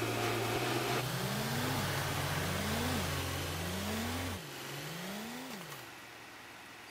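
A truck engine revs up repeatedly as it shifts through gears.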